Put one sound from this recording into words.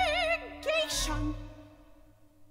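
A woman sings a high, held note that rings out in a large hall.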